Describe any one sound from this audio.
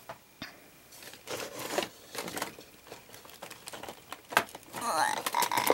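Plastic packaging rustles and crinkles as it is handled up close.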